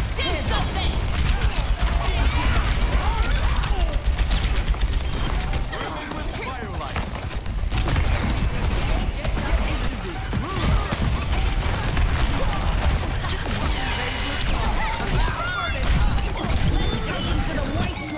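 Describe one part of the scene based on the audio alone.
A game weapon fires rapid energy shots.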